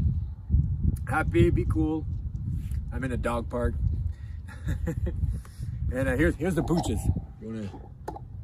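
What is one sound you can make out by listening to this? A man talks casually and animatedly close to the microphone.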